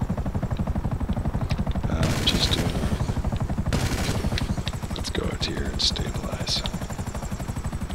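A helicopter engine whines.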